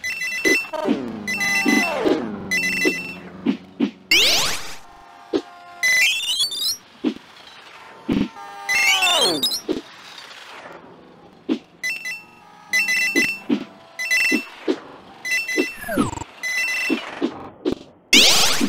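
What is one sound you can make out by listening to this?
Bright chiming coin pickups ring out in quick runs.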